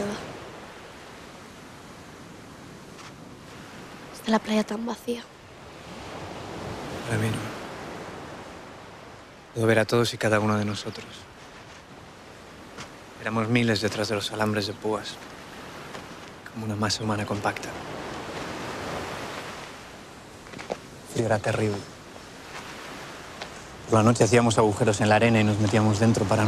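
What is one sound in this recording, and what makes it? Waves wash softly onto a beach.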